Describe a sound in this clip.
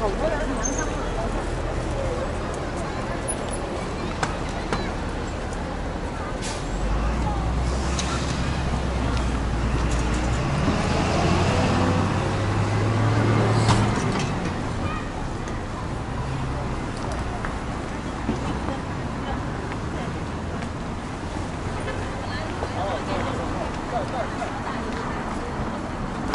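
Traffic rumbles steadily along a busy city street.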